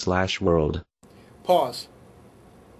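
A young man speaks calmly into a phone nearby.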